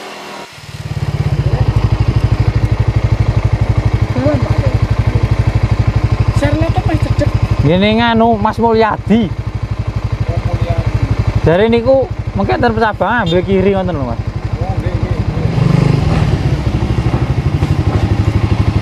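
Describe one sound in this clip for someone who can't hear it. A motorcycle engine idles with a steady, throbbing putter.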